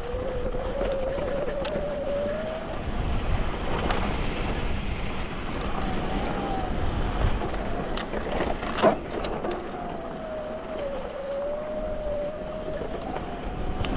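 A bicycle freewheel buzzes steadily while coasting.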